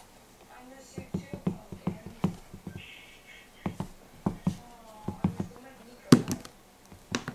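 Shoe soles knock rapidly against a wall.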